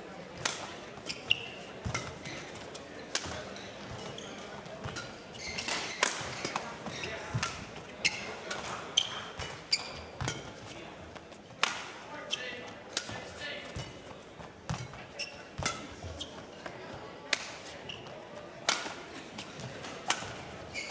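Shuttlecock hits crack sharply back and forth in a large echoing hall.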